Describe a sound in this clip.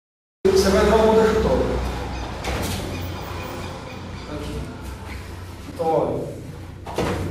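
A man speaks calmly in an echoing room.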